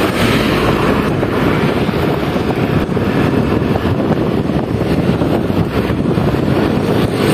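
Traffic rumbles steadily along a road outdoors.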